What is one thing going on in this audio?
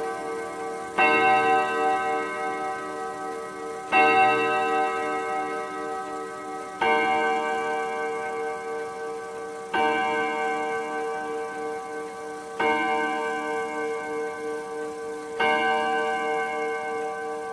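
A clock chimes with slow, ringing strikes that fade between each one.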